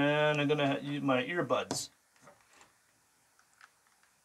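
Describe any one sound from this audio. A plug clicks into a socket.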